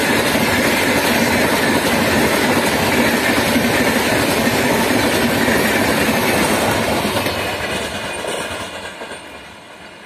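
A passenger train rumbles past loudly on the rails, then fades.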